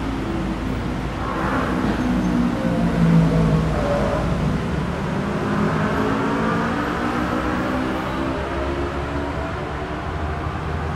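A motorbike engine rises and falls in pitch as it passes close by.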